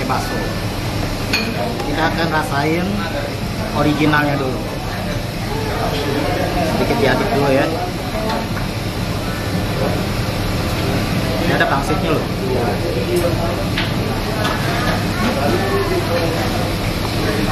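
A fork scrapes and clinks against a ceramic bowl.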